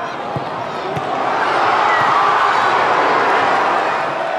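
A stadium crowd roars louder as an attack nears the goal.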